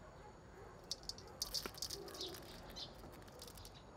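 Dry bits of orange peel rattle into a metal bowl.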